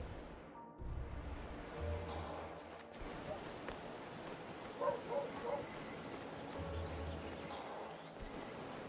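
Footsteps pad softly across grass.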